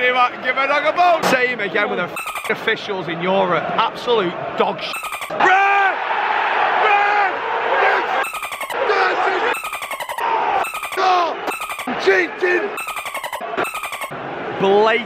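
A stadium crowd chants and sings together, echoing under a roof.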